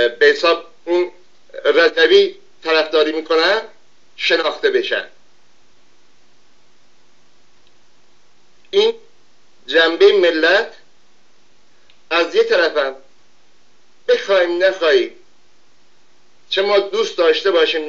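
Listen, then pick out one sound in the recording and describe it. An older man speaks calmly into a close microphone, in bursts with pauses.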